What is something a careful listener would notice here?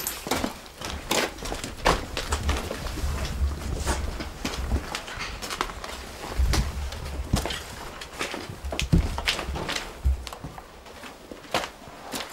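Clothing rustles and gear knocks as men move through a cramped space.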